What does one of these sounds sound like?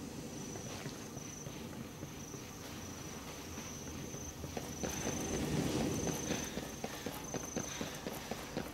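Quick footsteps thud on hard pavement.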